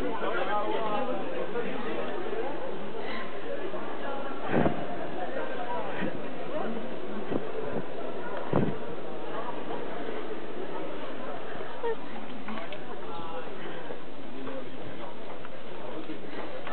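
A crowd of young people chatter in an echoing hall.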